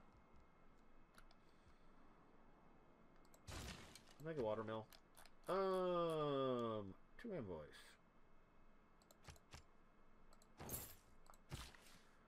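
Soft interface clicks sound as game menus open and close.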